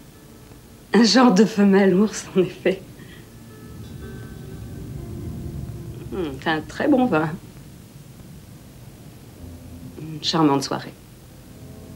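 A woman speaks softly and intimately, close by.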